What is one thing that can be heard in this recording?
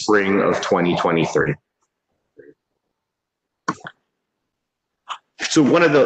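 An adult man speaks calmly over an online call, pausing between phrases.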